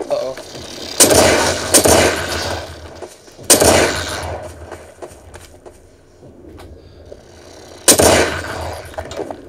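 A pistol fires loud, sharp single shots.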